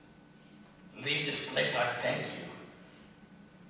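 A man speaks, heard from a distance in a hall.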